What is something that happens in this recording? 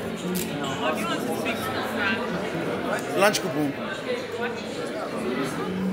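A man and a young woman talk across a table.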